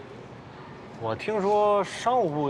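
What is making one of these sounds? An older man speaks in a low, serious voice nearby.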